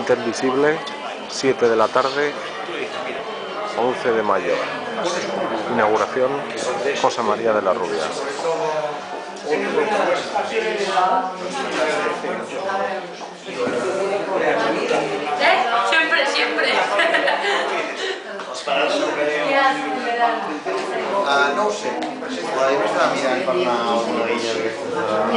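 A crowd of men and women chats at once in a room that echoes a little.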